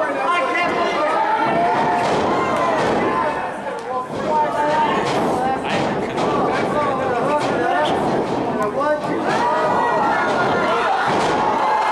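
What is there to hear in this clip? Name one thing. A body slams heavily onto a ring mat with a thud.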